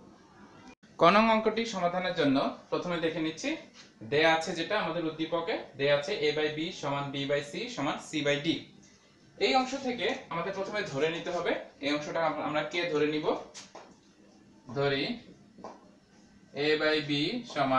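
A man explains with animation, close to a microphone.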